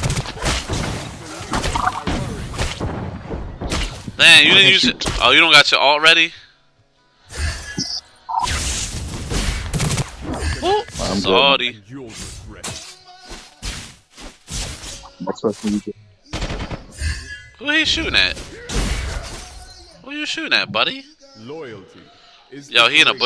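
Game sound effects of spells and attacks burst and whoosh.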